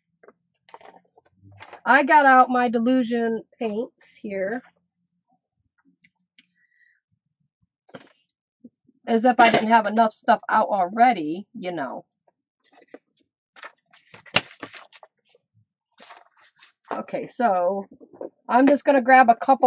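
Paper rustles and slides as sheets are moved.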